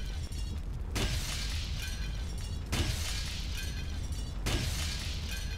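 An axe strikes a glass window several times with sharp knocks.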